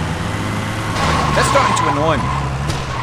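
A truck smashes through a wooden fence with a crunch.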